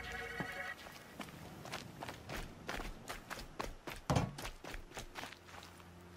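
Footsteps rustle quickly through dry grass and dirt.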